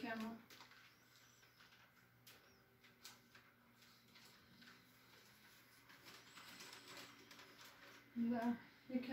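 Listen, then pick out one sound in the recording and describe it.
Items clatter softly as a cupboard is rummaged through.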